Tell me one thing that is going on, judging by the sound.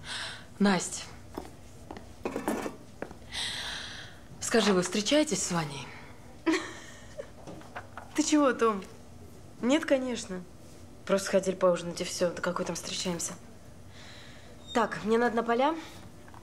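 A young woman speaks sharply nearby.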